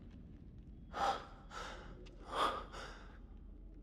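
A man asks a question calmly.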